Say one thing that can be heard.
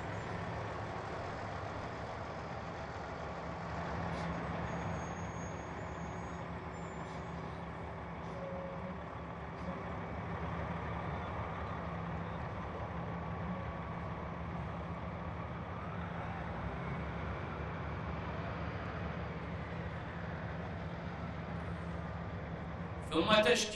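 Vehicle engines rumble steadily as they drive slowly past.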